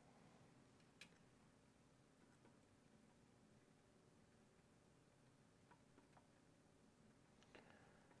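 Pliers click against a metal ring.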